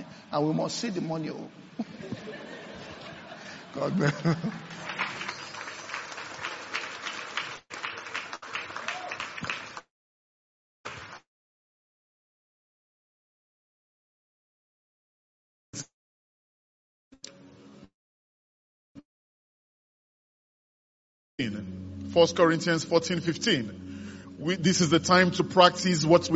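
A man speaks calmly through a microphone, pausing silently in the middle.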